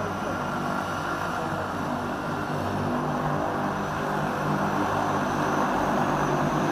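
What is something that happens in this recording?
Propeller engines of a small plane roar steadily up close and grow louder.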